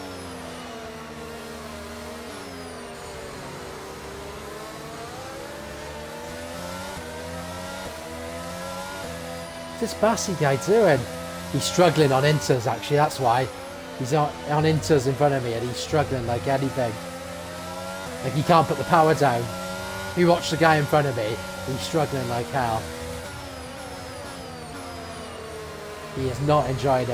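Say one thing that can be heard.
A racing car engine whines steadily, shifting pitch up and down.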